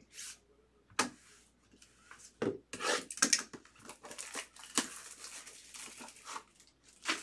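Plastic wrapping crinkles and rustles as hands tear open a box.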